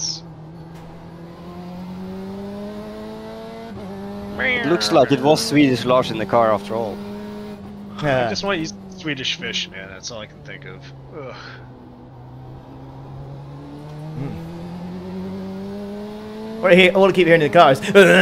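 A racing car engine drones steadily, rising and falling in pitch with the gears.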